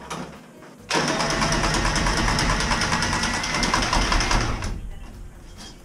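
A power press tool whirs loudly as it squeezes a pipe fitting.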